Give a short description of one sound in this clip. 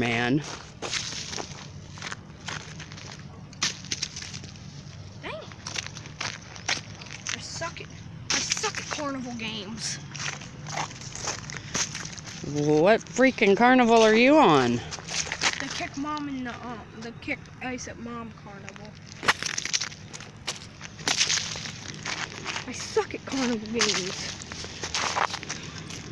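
Footsteps crunch on wet leaves and pavement.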